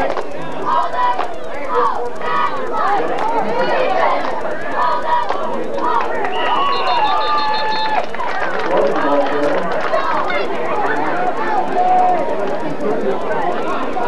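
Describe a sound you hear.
A large crowd chatters and cheers outdoors.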